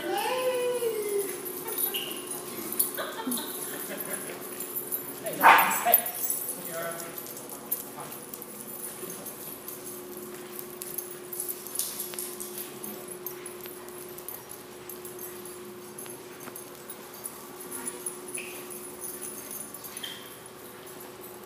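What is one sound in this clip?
Dogs bark and yelp in an echoing room.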